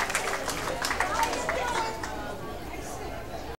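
A fiddle plays a melody.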